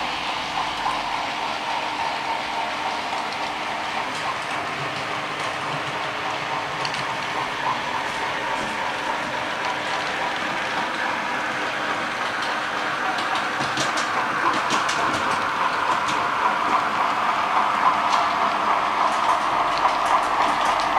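A model train's motor whirs steadily and grows louder as it comes closer.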